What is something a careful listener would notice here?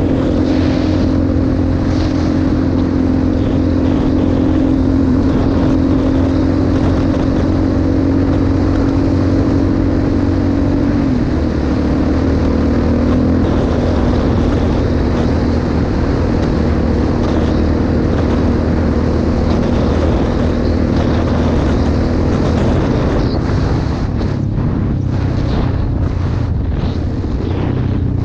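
Wind buffets loudly past.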